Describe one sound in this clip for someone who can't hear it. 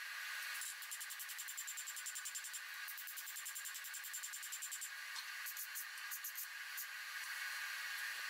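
A hammer rings sharply on hot metal over an anvil.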